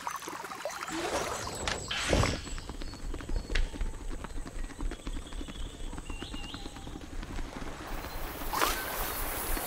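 A small ball rolls and rumbles over rough, sandy ground.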